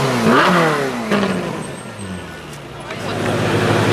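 A sports car engine revs loudly and roars away.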